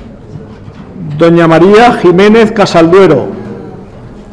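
A woman speaks loudly through a microphone in a large echoing hall.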